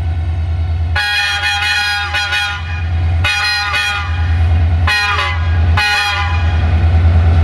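A train horn blasts several times, loud and close.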